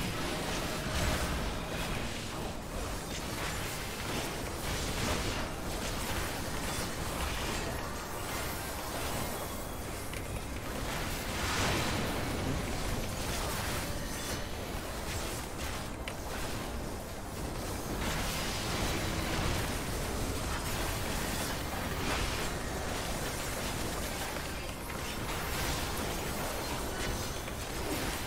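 Fantasy battle effects crash and boom continuously.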